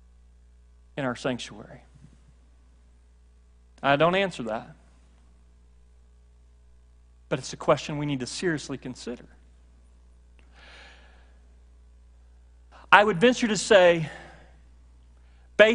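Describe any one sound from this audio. A middle-aged man speaks in short bursts through a microphone, with pauses between phrases.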